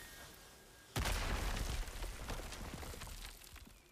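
A magical rune bursts alight with a rushing whoosh.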